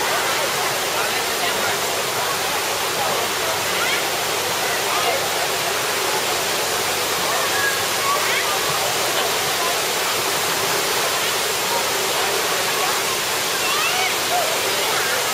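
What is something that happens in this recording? Water rushes steadily.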